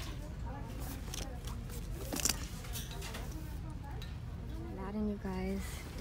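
Hands rustle and shuffle through hanging bags.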